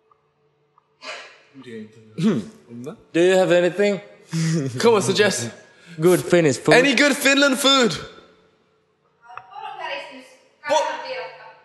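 Young men speak with animation into a microphone.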